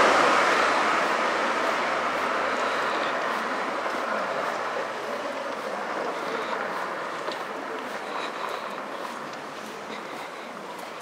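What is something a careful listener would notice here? A van drives away down a street and slowly fades.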